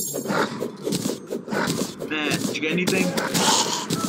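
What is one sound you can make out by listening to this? Video game combat effects crackle and pop.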